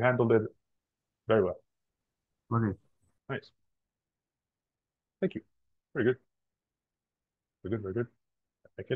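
A man speaks in short, halting phrases over an online call.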